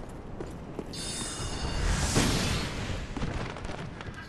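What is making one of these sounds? Wooden crates smash and debris scatters.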